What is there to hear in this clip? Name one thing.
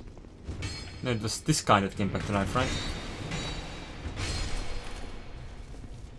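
A battle axe strikes an armoured enemy.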